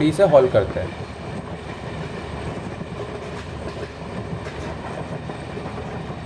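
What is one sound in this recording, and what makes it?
Train carriages rumble and clatter steadily along the track.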